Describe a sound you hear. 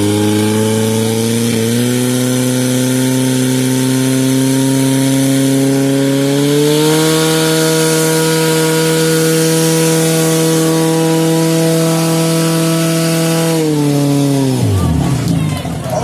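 A pump engine drones loudly and steadily, rises in pitch, then winds down and stops.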